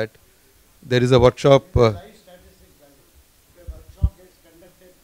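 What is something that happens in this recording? An older man speaks loudly into a microphone, with short pauses.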